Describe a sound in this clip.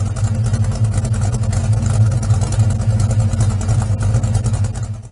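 A car engine idles with a deep, lumpy rumble from the exhaust close by.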